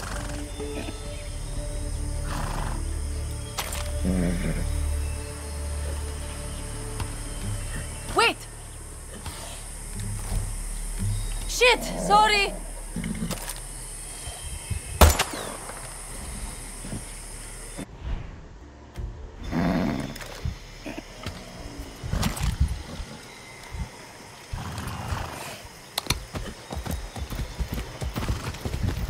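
Horse hooves thud on soft ground.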